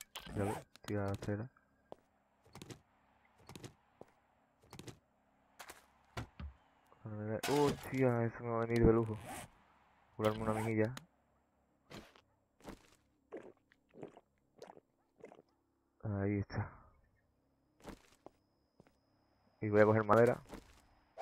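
Footsteps crunch on rubble and gravel.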